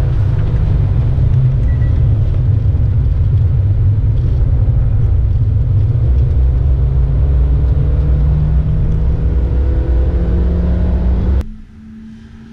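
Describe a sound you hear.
A car engine roars loudly from inside the cabin, its pitch climbing as it speeds up.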